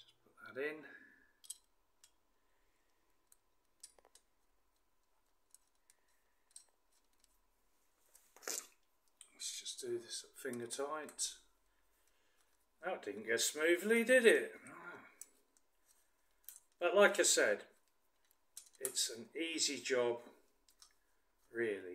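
Metal parts clink softly.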